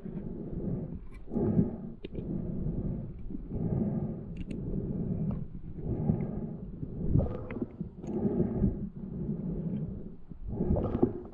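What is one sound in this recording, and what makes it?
A diver breathes loudly and steadily through a regulator underwater.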